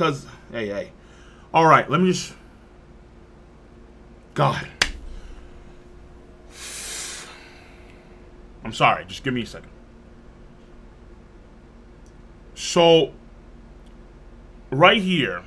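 A man exclaims loudly with frustration close to a microphone, in short outbursts.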